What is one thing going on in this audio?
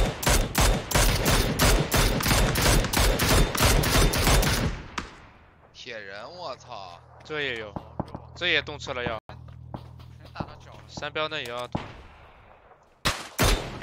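A rifle fires a sharp shot.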